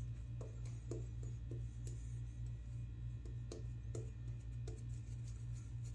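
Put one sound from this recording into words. A shaving brush swishes lather on a man's face.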